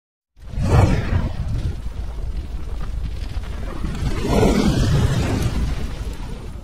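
Flames roar and crackle with a deep whoosh.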